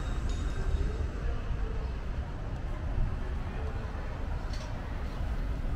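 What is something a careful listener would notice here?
A car drives slowly along the street.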